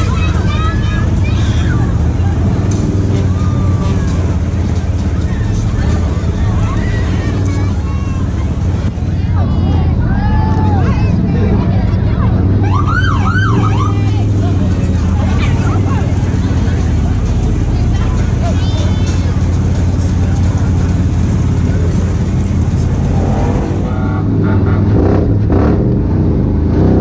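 An engine rumbles steadily close by.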